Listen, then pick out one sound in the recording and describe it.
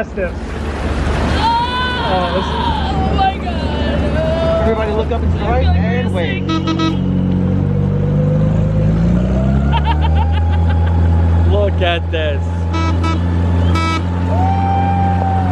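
A boat engine hums steadily close by.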